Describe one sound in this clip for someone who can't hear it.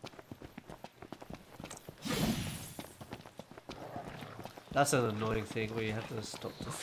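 Footsteps run quickly over dry dirt.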